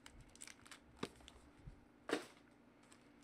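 A card pack taps down on a table.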